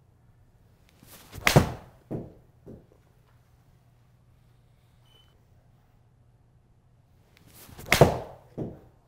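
A golf club swishes through the air.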